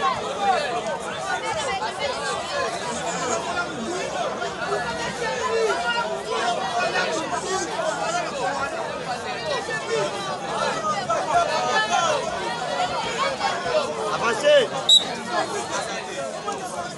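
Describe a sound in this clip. A large outdoor crowd cheers and shouts throughout.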